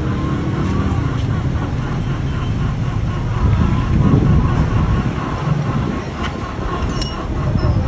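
Small metal parts click and clink as a nut is turned by hand.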